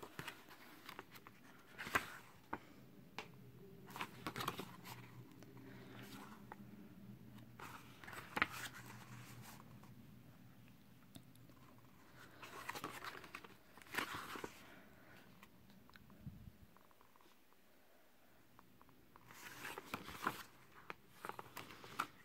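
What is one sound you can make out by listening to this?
Pages of a book rustle and flip as they are turned by hand.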